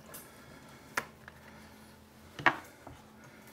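Dishes clink briefly at a sink.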